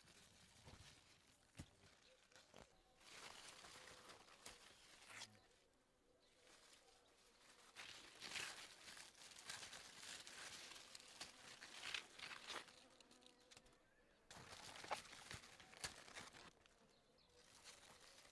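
Leaves rustle as hands push through dense plants.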